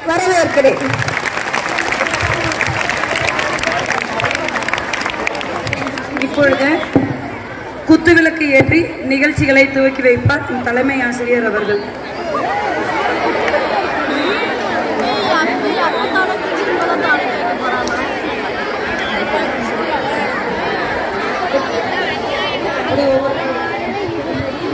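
A crowd of children chatters nearby.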